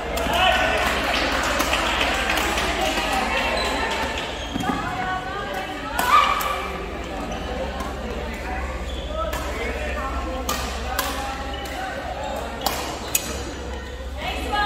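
A crowd of voices chatters throughout in a large echoing hall.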